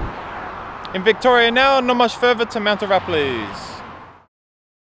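A young man talks calmly close up.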